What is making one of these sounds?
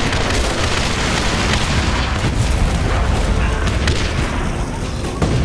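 Explosions boom and crackle in quick succession.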